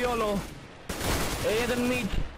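Gunfire rattles in a quick burst.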